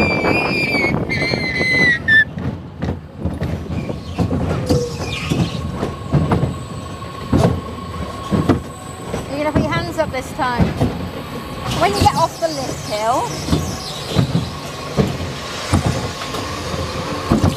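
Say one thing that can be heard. A ride car rumbles and rattles along a track outdoors.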